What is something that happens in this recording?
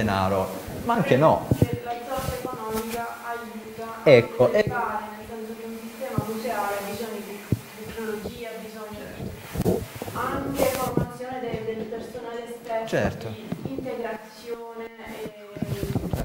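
A middle-aged man speaks calmly and steadily to a listener close by.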